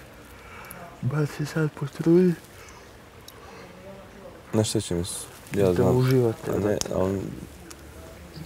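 A second young man answers casually nearby.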